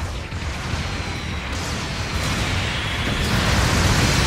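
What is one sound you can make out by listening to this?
Heavy metal footsteps thud and clank.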